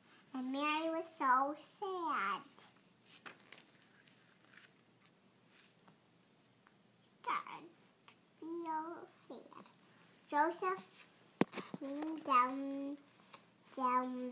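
Book pages rustle as a young girl turns them.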